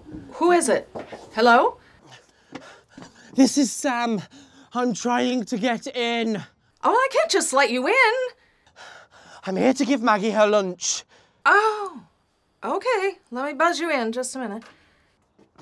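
A middle-aged woman speaks with agitation close by.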